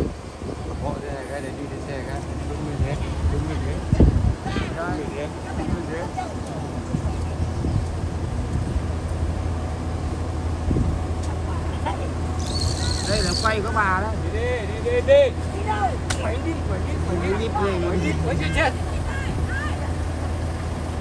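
Women chat nearby outdoors.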